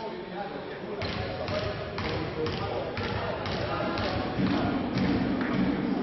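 A basketball bounces steadily on a hard floor in a large echoing hall.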